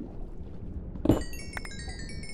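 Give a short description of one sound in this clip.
A stone block cracks and breaks with a dull thud.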